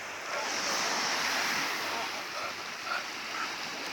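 A dog pants.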